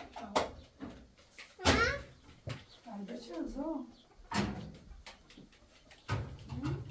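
A young child chatters softly nearby.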